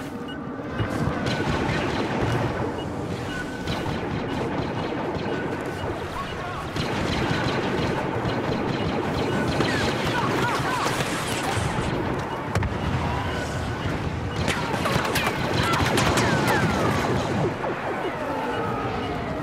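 Battle noise of gunfire and explosions rumbles steadily.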